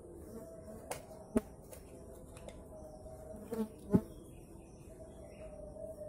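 Fingers tap and scrape inside a hollow bamboo tube.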